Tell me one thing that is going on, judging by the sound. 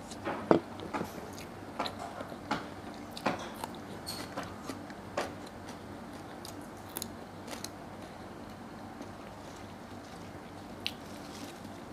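A woman chews food with her mouth close by.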